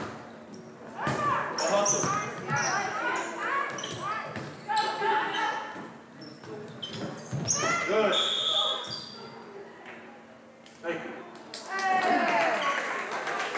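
Young women players call out and shout to each other.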